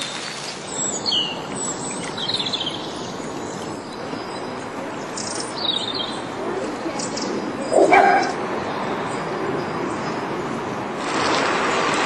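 Floodwater rushes and churns steadily outdoors.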